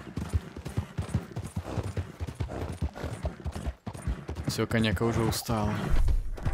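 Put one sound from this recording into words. Horses' hooves thud steadily on a dirt trail.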